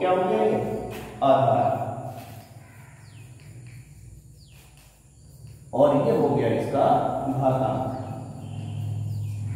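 A middle-aged man speaks calmly, explaining, close by.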